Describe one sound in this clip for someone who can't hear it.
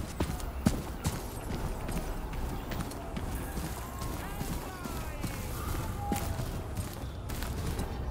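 Footsteps crunch on dirt and stone.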